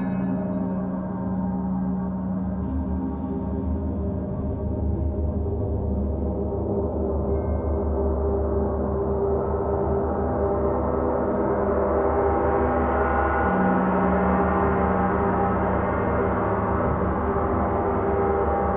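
Large gongs hum and shimmer with a long, swelling drone.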